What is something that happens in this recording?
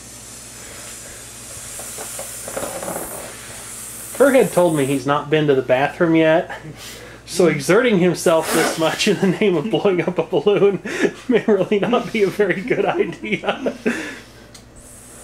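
A man blows forcefully into a balloon, breathing in and out in long puffs.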